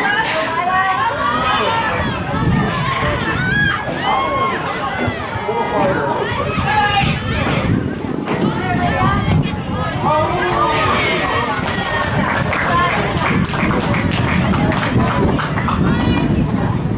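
A crowd of women and men nearby chatter and call out excitedly outdoors.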